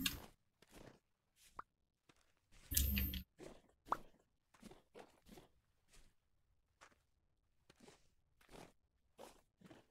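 Soft footsteps crunch on grass and dirt.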